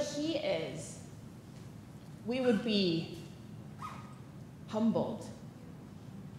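A woman speaks calmly into a microphone, in short phrases with pauses, in a slightly echoing hall.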